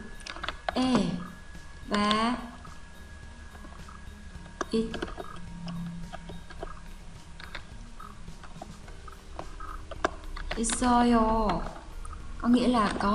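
A young woman speaks calmly and slowly, close to a microphone.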